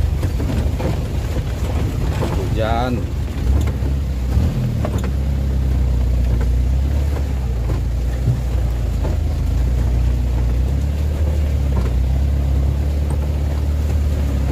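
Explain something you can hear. Rain patters on a vehicle's roof and windscreen.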